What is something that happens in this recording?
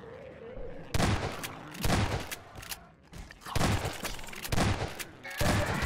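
A shotgun fires loud blasts several times.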